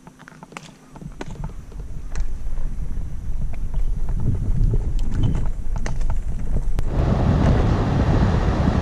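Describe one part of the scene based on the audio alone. Wind rumbles loudly against the microphone.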